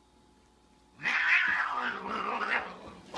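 A cat yowls and hisses loudly.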